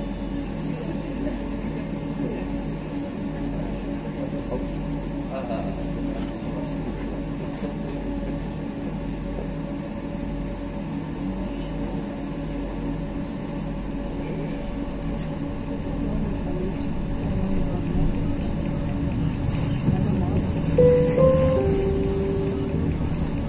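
A vehicle's engine hums steadily from inside as it moves.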